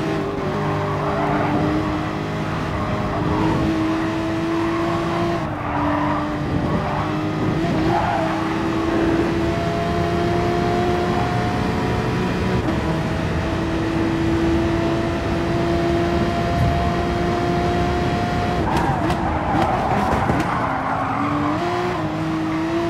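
A racing car engine roars at high revs and shifts through gears.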